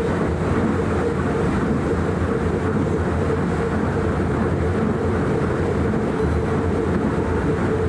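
A train rumbles steadily through a tunnel.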